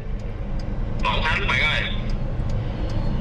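A man talks through a phone speaker.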